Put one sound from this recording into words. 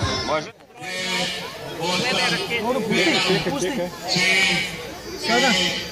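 A man talks to children close by.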